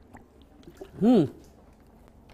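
A man lets out a short, loud voiced sigh close by.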